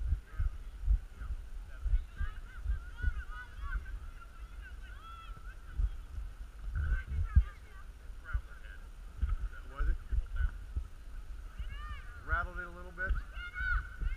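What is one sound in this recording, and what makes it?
Young players shout in the distance across an open field.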